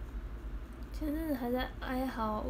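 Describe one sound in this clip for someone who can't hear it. A young woman speaks softly, close to the microphone.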